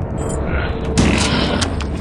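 A shotgun fires with a loud blast.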